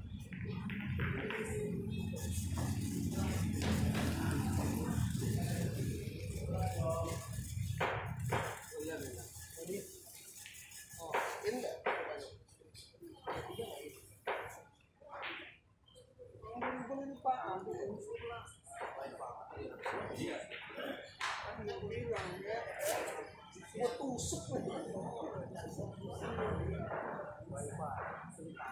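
Pool balls knock and click against each other on a table.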